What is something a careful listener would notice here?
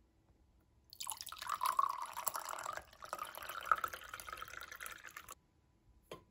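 Water trickles from a pitcher into a glass.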